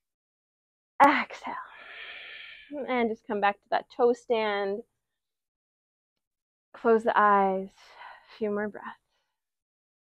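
A young woman speaks calmly and clearly close to a microphone.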